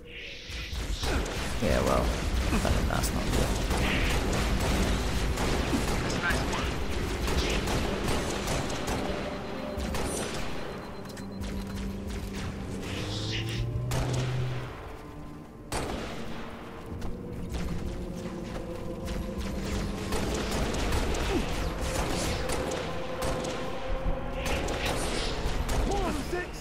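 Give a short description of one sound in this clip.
Plasma bolts explode with sharp bangs nearby.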